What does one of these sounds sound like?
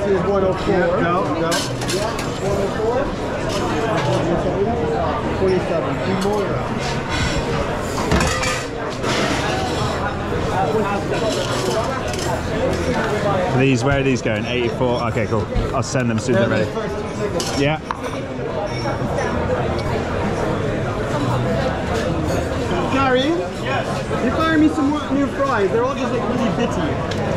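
Dishes and utensils clatter and clink.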